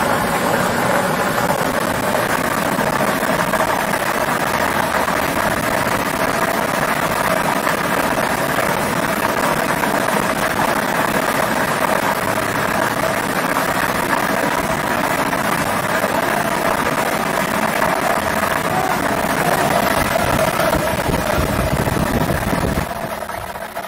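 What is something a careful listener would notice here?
A blower whooshes steadily, then stops.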